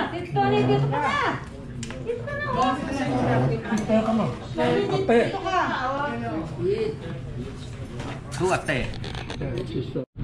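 Several adults chat and talk over one another close by.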